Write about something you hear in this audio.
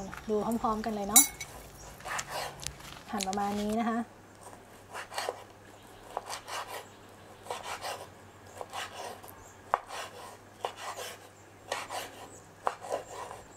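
A knife chops through sausage onto a wooden board with repeated knocks.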